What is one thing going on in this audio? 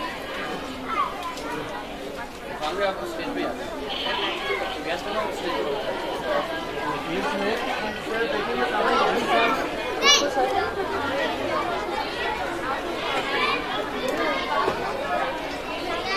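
A crowd of men chatters in the background.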